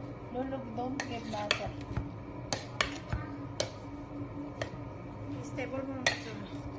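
A metal ladle clinks and scrapes against a steel pot of rice.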